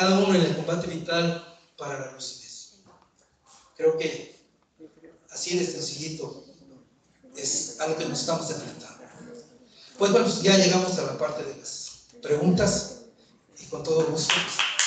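A man speaks through a microphone, with pauses between phrases.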